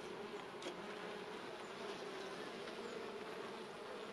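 A metal tool scrapes and knocks against wooden hive frames.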